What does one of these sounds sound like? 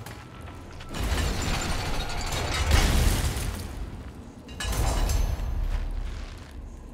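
A heavy metal crank turns with a loud grinding rumble.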